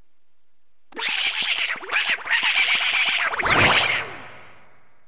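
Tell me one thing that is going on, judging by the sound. Quick footsteps patter as a cartoon duck runs down a long hall.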